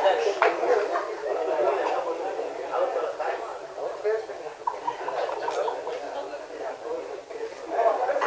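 A middle-aged man speaks with animation into a microphone through loudspeakers.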